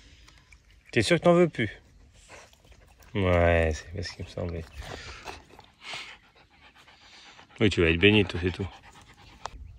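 A puppy whines in short high cries.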